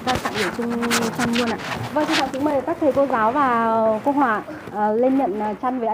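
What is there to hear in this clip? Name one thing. A woman speaks loudly to a gathered crowd.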